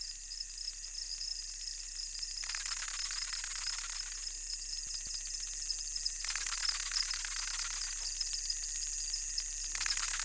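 Swarming insects buzz and whir in a high, steady drone.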